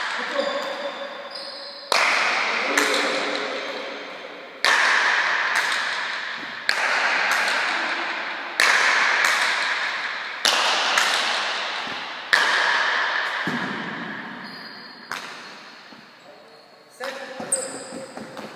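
A hard ball smacks sharply against a wall, ringing out in a large echoing hall.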